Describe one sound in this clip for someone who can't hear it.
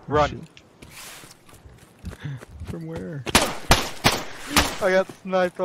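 Footsteps run and swish through tall grass.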